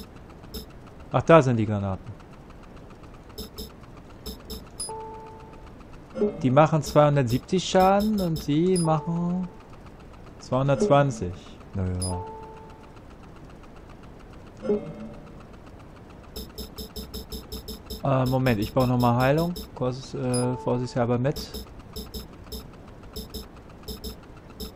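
Short electronic menu beeps sound now and then.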